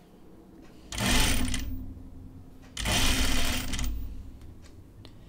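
A sewing machine runs in short bursts.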